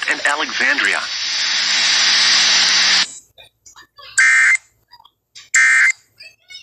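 A radio broadcast plays.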